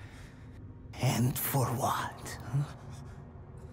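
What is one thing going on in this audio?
A man speaks sharply and questioningly, close by.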